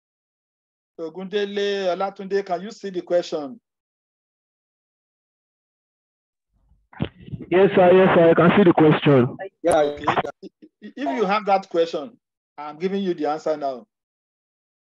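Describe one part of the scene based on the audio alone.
A man speaks calmly over an online call, in bursts with pauses.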